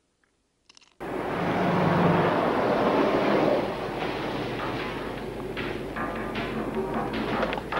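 Traffic and street bustle hum outdoors.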